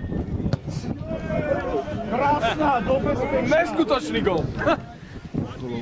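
Young men shout excitedly at a distance outdoors.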